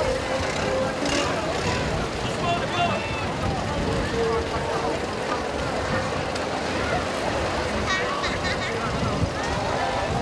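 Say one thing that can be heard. Water splashes as men wade, pushing a boat.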